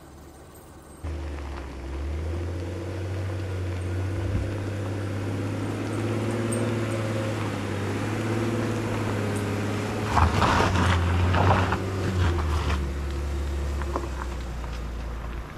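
A truck engine rumbles as the truck drives closer.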